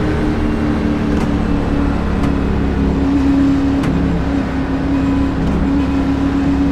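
A race car engine roars steadily at high speed.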